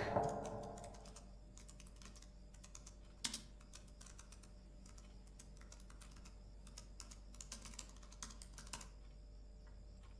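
Fingers tap quickly on a laptop keyboard.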